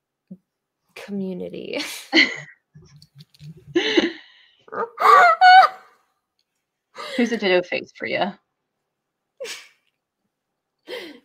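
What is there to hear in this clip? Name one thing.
A young woman talks and laughs over an online call.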